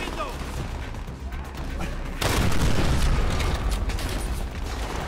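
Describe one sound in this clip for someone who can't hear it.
A machine gun fires in a burst.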